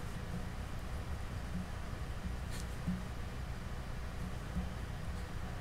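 Hands rub and squeeze a soft foam object with a quiet brushing sound.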